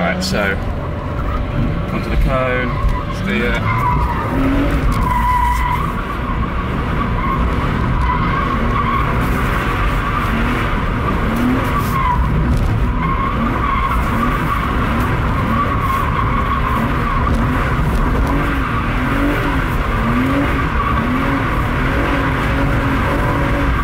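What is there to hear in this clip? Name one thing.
A car engine roars and revs hard.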